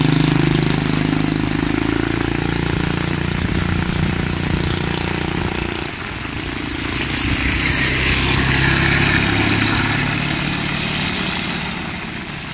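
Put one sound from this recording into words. A motorbike engine hums nearby and fades away.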